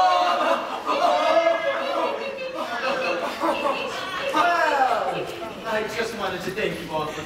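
Several young actors sing together on a stage, heard from the audience in a large hall.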